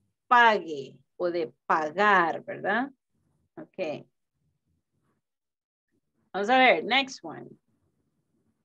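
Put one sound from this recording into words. A woman speaks slowly and clearly through an online call, pronouncing single words.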